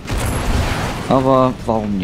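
A blaster fires with a sharp zap.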